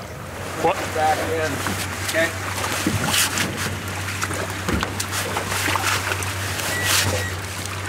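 Dry grass and leaves rustle as a man crawls over the ground.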